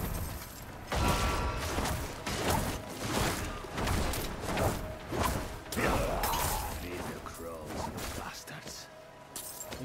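Sharp hits and impacts thud in quick bursts.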